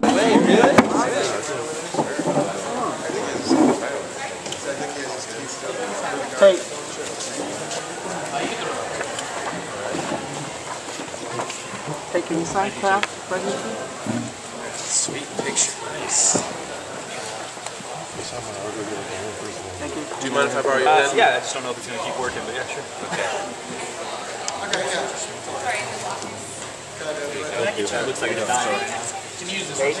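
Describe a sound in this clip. A middle-aged man talks calmly up close.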